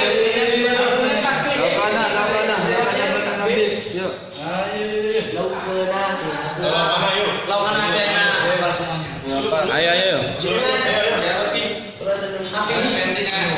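A group of young men sings together loudly, close by.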